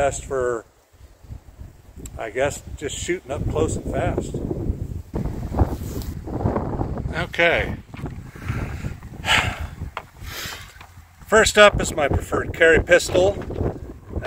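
A middle-aged man talks calmly and close by, outdoors.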